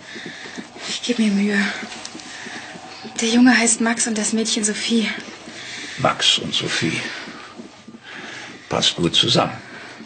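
A man speaks softly and warmly up close.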